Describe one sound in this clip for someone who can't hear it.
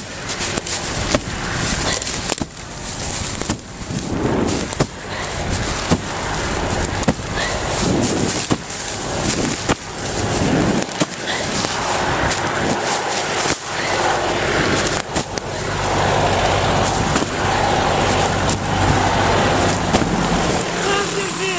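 Low flames crackle and pop through dry leaves.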